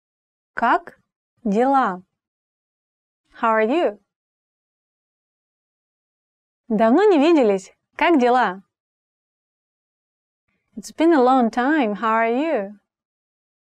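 A young woman speaks clearly and slowly into a close microphone, pausing between phrases.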